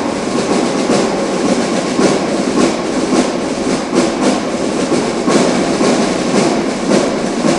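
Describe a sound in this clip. Footsteps march steadily across a large echoing hall.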